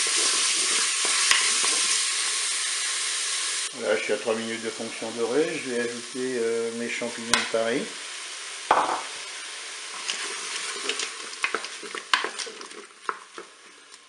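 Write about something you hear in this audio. Food sizzles loudly in a hot pan and slowly quiets.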